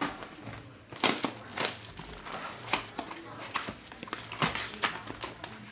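A cardboard box is torn open.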